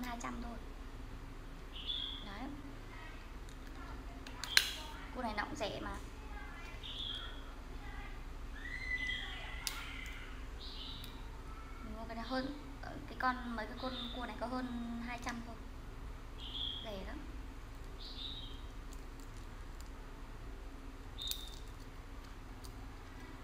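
Crab shells crack and snap close up.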